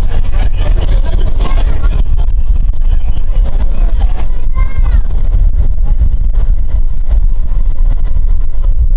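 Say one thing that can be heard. Wind roars loudly past an open window.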